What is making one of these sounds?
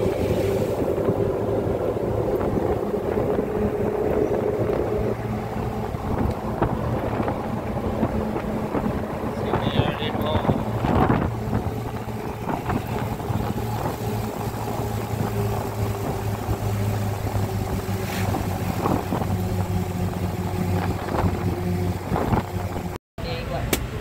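A small truck's engine drones as the truck drives along a road.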